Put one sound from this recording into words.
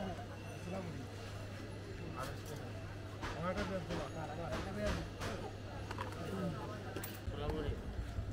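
Several men talk close by amid a busy crowd.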